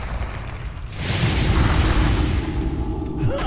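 A fire spell whooshes and crackles.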